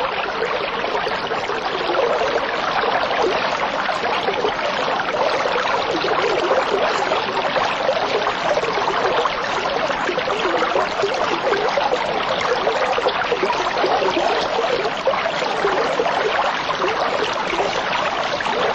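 Air bubbles gurgle and fizz steadily in water close by.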